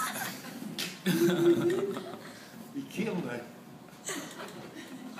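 A second elderly man laughs heartily nearby.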